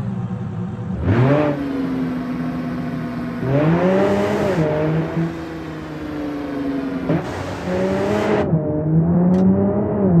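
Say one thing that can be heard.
A sports car engine revs and accelerates through the gears.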